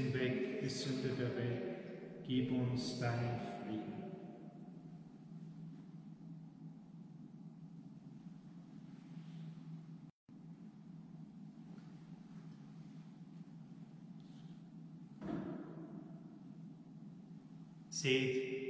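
A man chants slowly through a microphone, echoing in a large hall.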